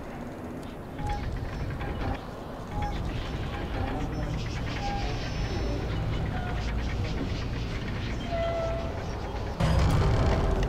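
A heavy wheel turns with a low grinding rumble.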